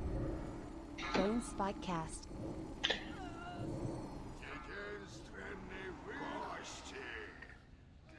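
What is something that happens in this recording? Magic spells crackle and whoosh in a fantasy battle.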